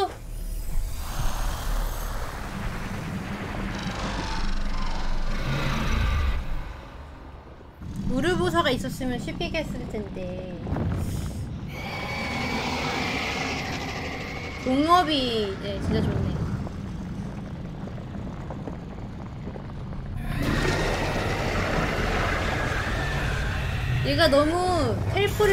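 A deep rumbling drones as a huge creature breaks apart.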